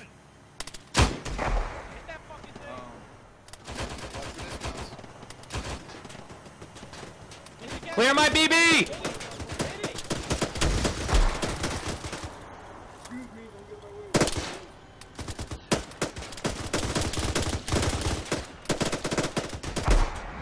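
Rifle shots crack out sharply, some in quick bursts.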